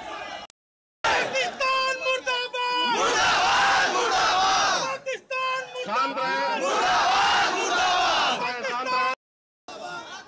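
A large crowd of men chants slogans loudly outdoors.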